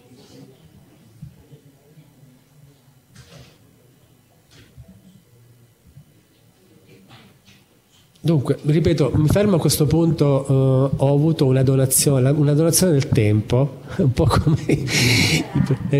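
A man speaks steadily through a microphone, heard from a distance in a large room.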